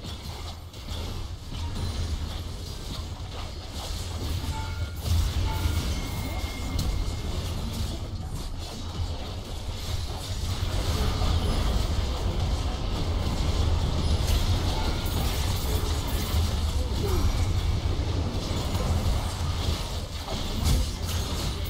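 Game spell effects crackle and burst during a battle.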